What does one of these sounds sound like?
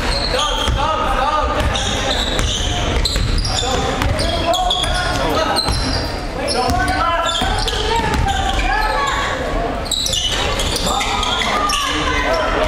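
Young men shout and call out in an echoing gym.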